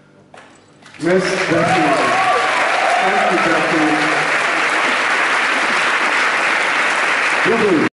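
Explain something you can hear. Hands clap in loud applause in a large hall.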